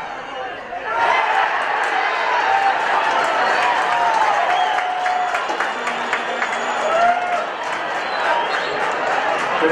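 A stadium crowd cheers loudly outdoors.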